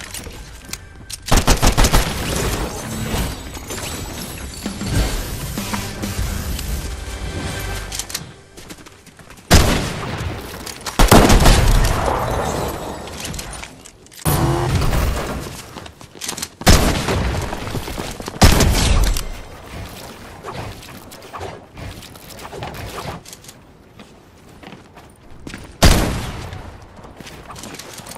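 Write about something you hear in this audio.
Footsteps run across the ground in a video game.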